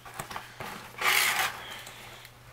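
A cardboard lid slides open with a scrape.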